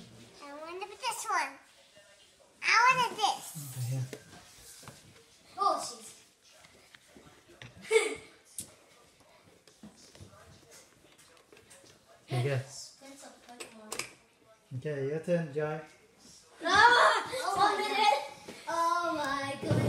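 A young girl talks and squeals playfully close by.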